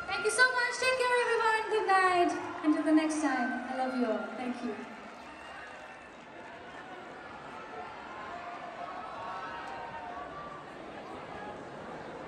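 A band plays music through loudspeakers.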